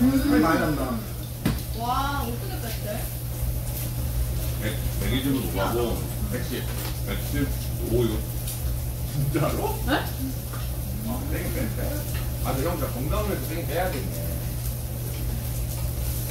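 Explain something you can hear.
Young men and women chat and laugh together nearby.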